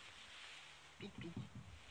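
Clothing rustles and brushes close by.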